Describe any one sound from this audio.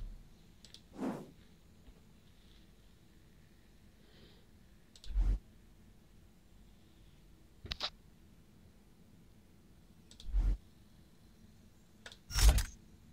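Menu clicks beep sharply now and then.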